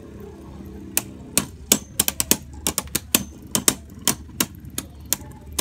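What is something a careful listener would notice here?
Spinning tops clash with sharp clicks.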